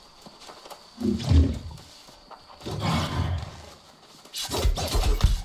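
A big cat snarls and growls.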